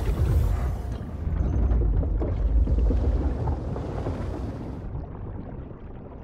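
Bubbles gurgle and rise through water, heard muffled underwater.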